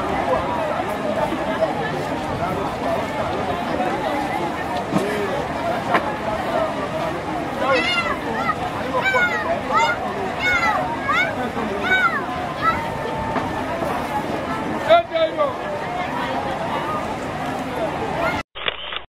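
A busy crowd chatters and calls out below, outdoors.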